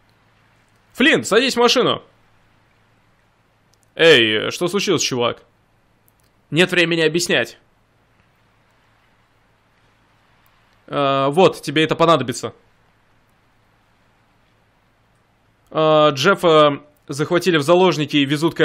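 A second man answers calmly, heard close.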